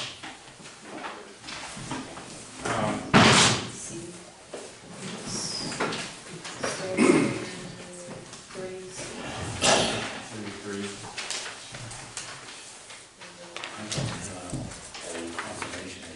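A man speaks calmly, heard from across a room.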